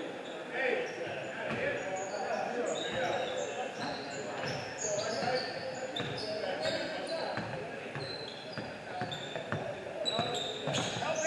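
Players and spectators call out and chatter in the background.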